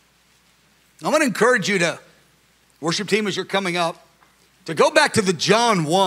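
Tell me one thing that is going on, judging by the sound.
A middle-aged man speaks with animation into a microphone, heard through loudspeakers.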